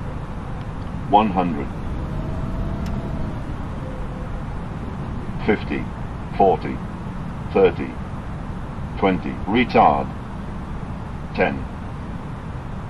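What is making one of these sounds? Jet engines rumble steadily.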